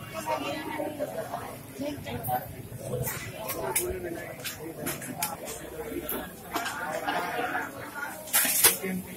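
A busy crowd of men and women chatters nearby.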